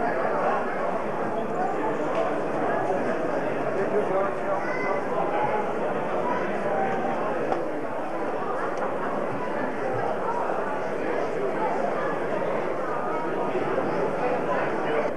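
A seated crowd chatters and murmurs in an echoing hall.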